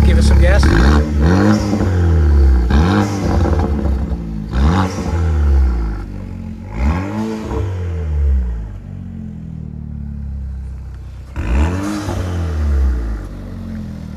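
An engine revs sharply several times and drops back each time.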